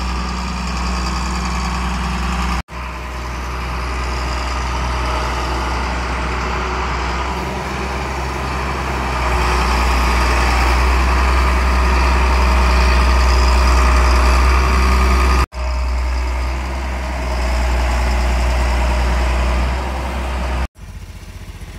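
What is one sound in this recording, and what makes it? A tractor engine idles with a steady, deep rumble nearby.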